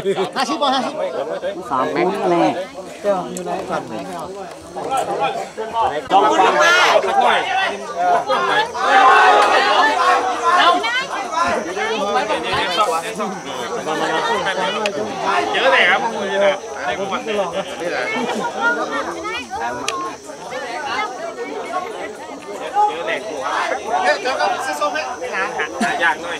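Young children chatter and call out close by.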